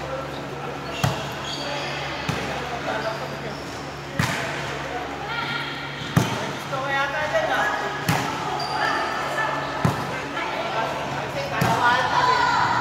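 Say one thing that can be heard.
A volleyball thumps off players' arms and hands in an echoing hall.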